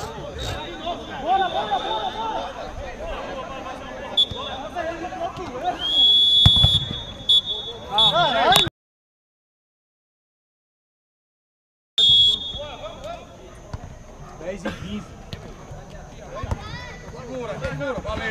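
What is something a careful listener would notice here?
Young men shout and call out across an outdoor pitch.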